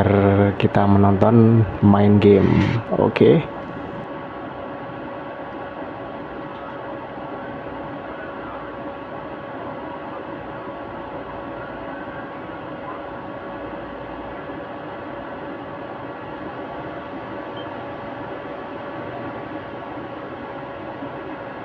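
A game console hums steadily.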